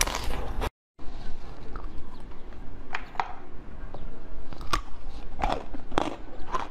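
A young woman chews soft food with wet smacking sounds close to a microphone.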